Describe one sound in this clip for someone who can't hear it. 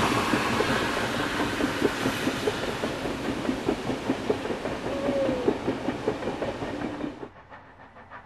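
Railway carriages rumble and clatter past close by.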